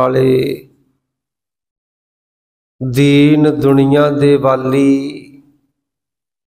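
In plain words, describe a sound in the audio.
A man chants in a sustained, melodic voice through a microphone, in short phrases with pauses.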